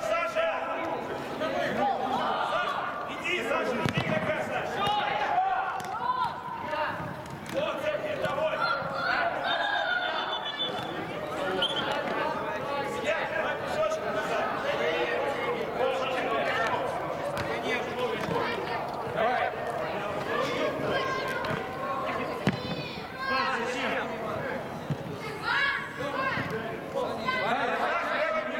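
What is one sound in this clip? Men shout and call out to each other across a large echoing hall.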